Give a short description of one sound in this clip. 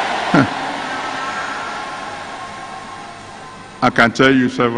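A large crowd cheers and sings loudly in a big echoing hall, then fades.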